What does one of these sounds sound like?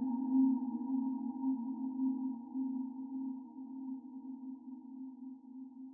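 An aquarium pump hums steadily and low.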